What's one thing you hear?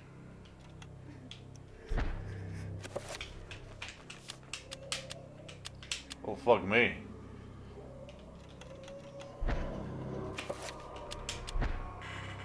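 Game menu clicks tick as selections change.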